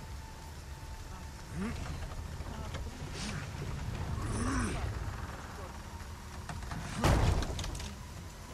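A heavy wooden door creaks and scrapes as it is pushed open.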